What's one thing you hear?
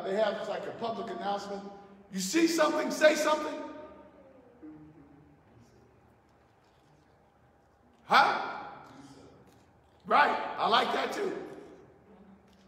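A man preaches with animation through a microphone, in an echoing hall.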